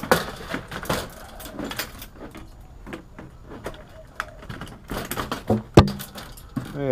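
Hard plastic clatters and knocks as a panel is handled.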